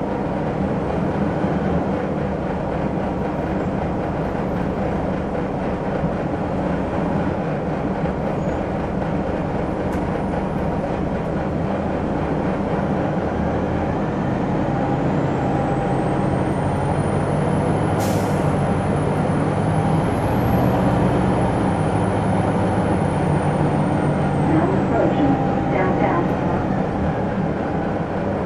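A bus engine idles with a steady low rumble.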